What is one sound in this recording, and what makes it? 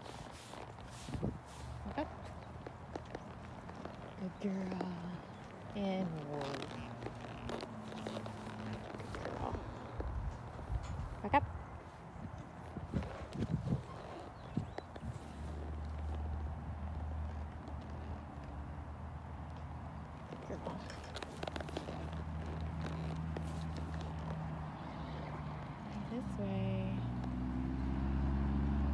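A horse's hooves thud as it walks on soft dirt.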